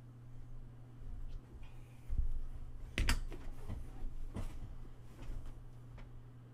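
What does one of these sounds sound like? A chair creaks and thumps as a man sits down.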